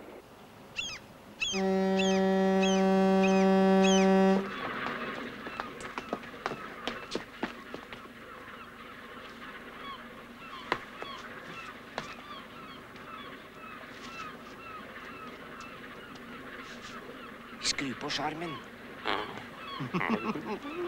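Seagulls cry overhead.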